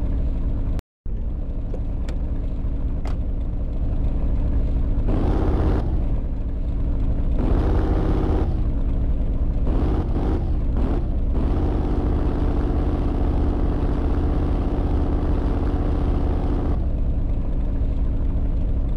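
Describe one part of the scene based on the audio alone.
A large car engine rumbles steadily.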